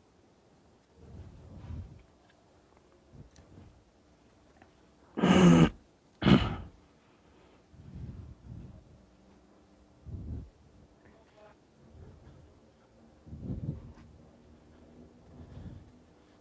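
A young man talks quietly and close to a microphone.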